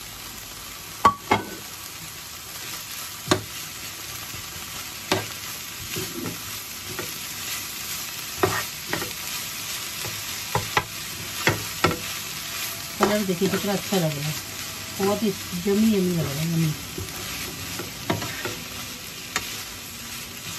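A spatula scrapes and knocks against a frying pan.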